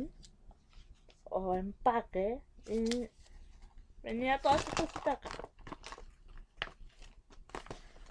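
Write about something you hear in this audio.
A plastic wrapper crinkles in a woman's hands.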